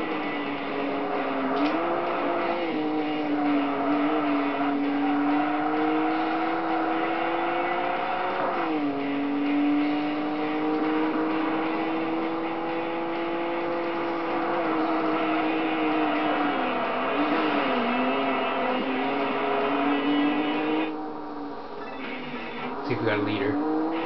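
A racing car engine roars at high speed, its pitch rising and dropping with each gear change.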